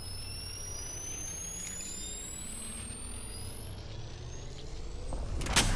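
An electronic device charges up with a steadily rising whine.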